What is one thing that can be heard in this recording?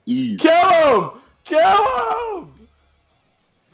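A young man shouts loudly and dramatically, heard through a speaker.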